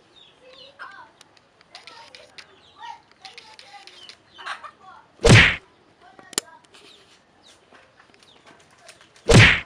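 Chickens cluck softly nearby.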